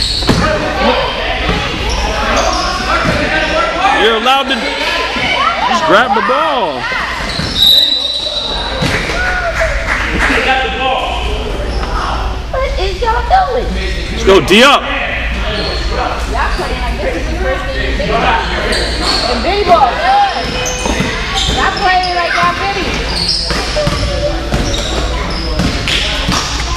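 Children and adults shout and cheer in a large echoing gym.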